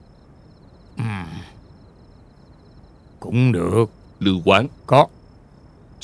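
An elderly man speaks slowly and quietly, close by.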